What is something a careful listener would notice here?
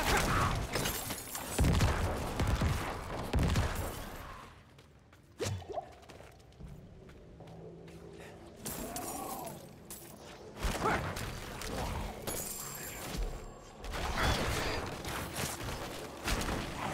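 Game combat sounds of blows and spells play in bursts.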